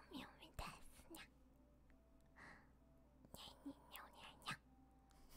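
A young woman speaks playfully into a close microphone.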